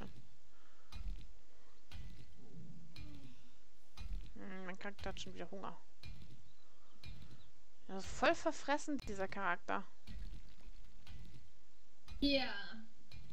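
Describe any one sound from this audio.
A stone tool strikes a rock with dull thuds.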